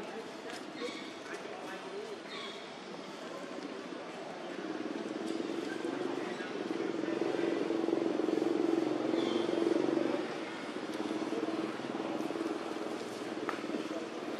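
Small monkeys rustle through dry leaves on the ground.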